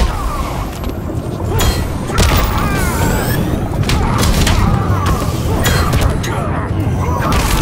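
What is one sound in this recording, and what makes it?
Punches and kicks land with heavy thuds and smacks.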